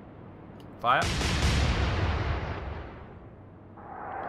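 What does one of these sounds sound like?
Heavy ship guns fire with a deep boom.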